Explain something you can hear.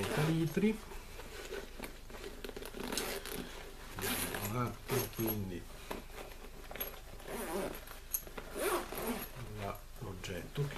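Fabric and nylon straps rustle as hands handle a backpack.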